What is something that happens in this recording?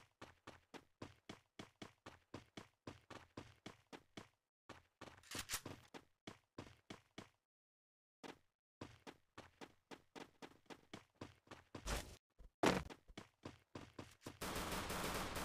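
Footsteps patter quickly and evenly on a hard floor.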